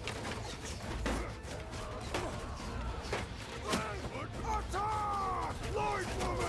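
Swords clash and strike in a distant battle.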